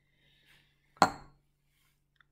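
A glass beaker is set down on a hard counter with a clink.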